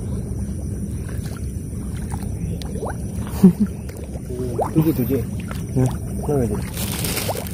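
Feet wade and splash through shallow water.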